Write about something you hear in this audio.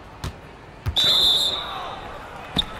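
A referee's whistle blows once.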